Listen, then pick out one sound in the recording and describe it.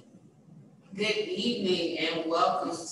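A woman speaks calmly through a microphone, heard over an online call.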